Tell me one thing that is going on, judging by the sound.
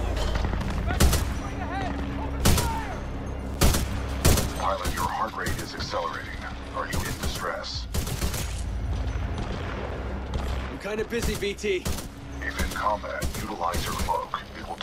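A rifle fires loud, sharp shots, one at a time.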